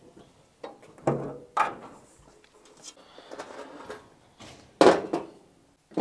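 A metal ramp clanks against a trailer.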